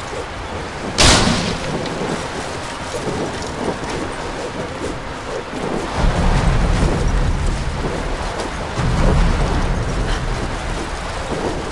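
Heavy debris crashes and rumbles loudly.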